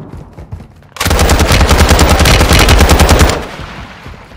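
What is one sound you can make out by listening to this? A rifle fires a long, rapid burst, loud and close.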